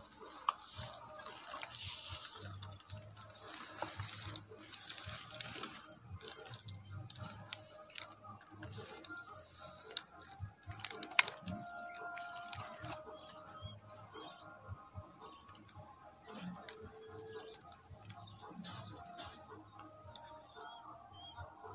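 Small bees buzz around a nest.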